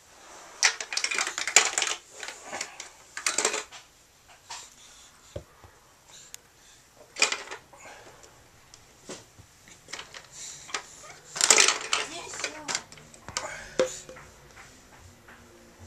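Plastic toy pieces click and rattle as a baby plays with them.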